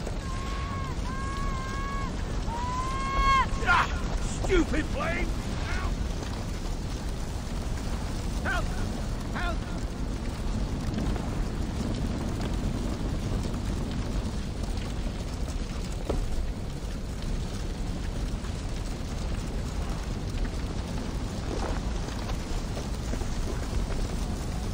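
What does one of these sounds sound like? Tall grass rustles as someone creeps slowly through it.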